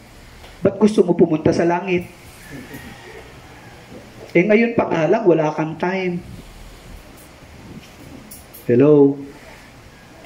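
A middle-aged man speaks calmly through a headset microphone over loudspeakers, pausing between phrases.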